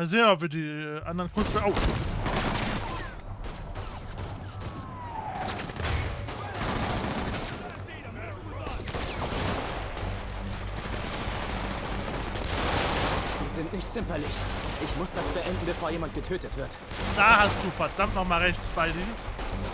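Gunfire crackles and echoes outdoors.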